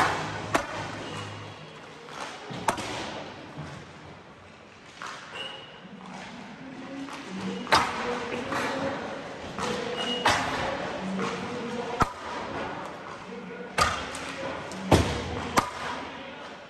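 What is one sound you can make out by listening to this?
Hockey pucks crack off sticks and bang against the boards in a large echoing rink.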